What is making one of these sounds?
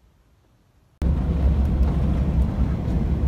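A car engine hums and tyres roll steadily on a road.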